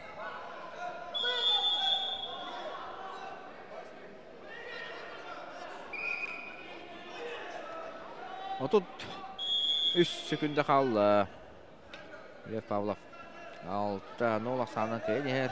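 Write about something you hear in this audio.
A crowd in a large hall chatters and shouts, with loud bursts of shouting.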